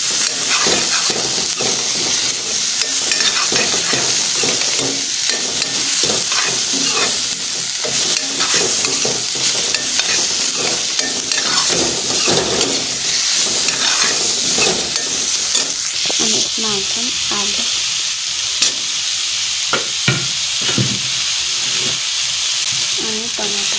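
A metal spoon scrapes and clatters against a steel wok.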